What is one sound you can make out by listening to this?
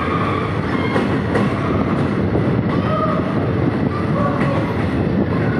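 A mine train rumbles and rattles steadily along its rails through a tunnel.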